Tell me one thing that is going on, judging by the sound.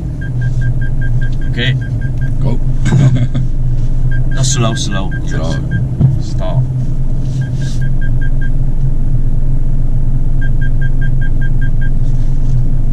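A car's indicator ticks in quick, even beats.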